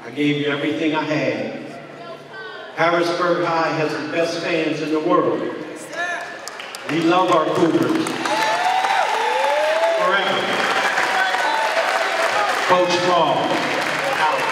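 An older man speaks through a microphone over loudspeakers in a large echoing hall.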